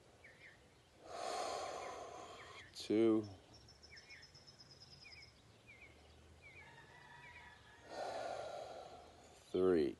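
A man breathes in deeply and slowly.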